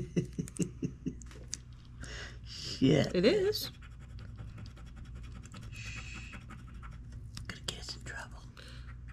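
A scratch-off ticket is scraped with a thin tool, with light scratching sounds.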